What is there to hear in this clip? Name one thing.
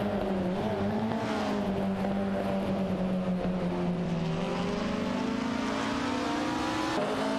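A racing car engine drones steadily at high revs, its pitch shifting with gear changes.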